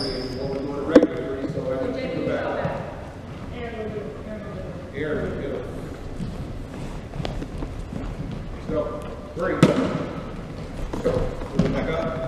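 Basketballs bounce on a wooden gym floor in a large echoing hall.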